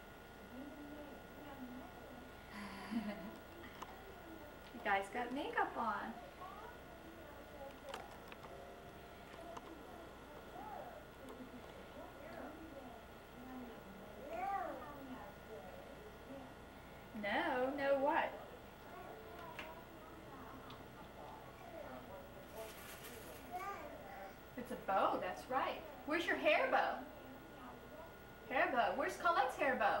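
A little girl babbles and talks close by.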